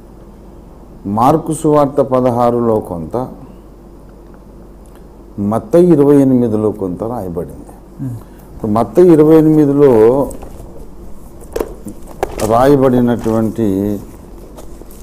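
A middle-aged man speaks slowly through a microphone, in drawn-out, tuneful phrases.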